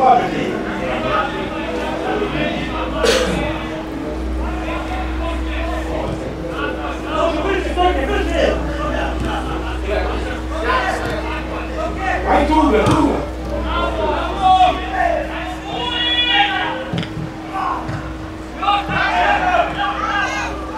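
Football players shout to one another across an open pitch.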